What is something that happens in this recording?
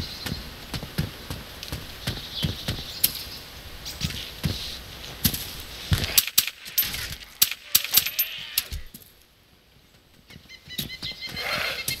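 Footsteps crunch on a gravel path at a steady walking pace.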